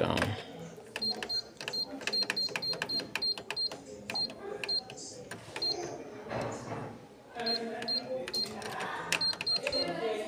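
A copier's control panel beeps in short, quick tones as buttons are pressed.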